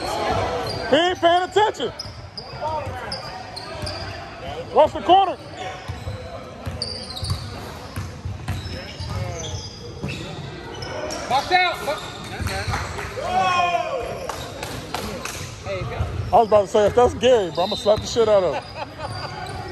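Sneakers squeak sharply on a hardwood court in an echoing gym.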